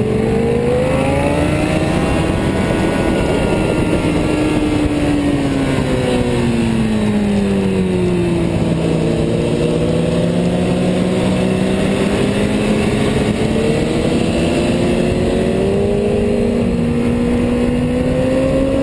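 A motorcycle engine roars close by, its pitch rising and falling as it speeds up and slows down.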